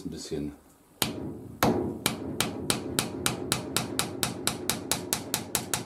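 A hammer taps rapidly on metal.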